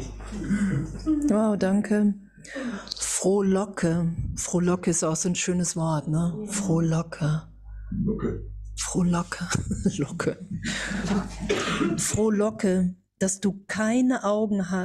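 An older woman speaks with animation into a microphone.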